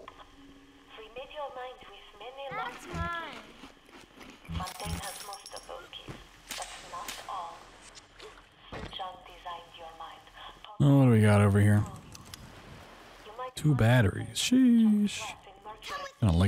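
A man's voice speaks calmly through a game's speakers.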